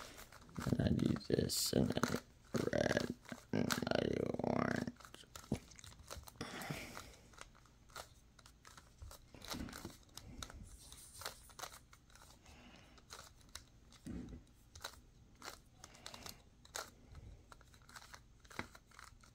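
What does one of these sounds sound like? Plastic puzzle pieces click and clack as a cube is twisted by hand.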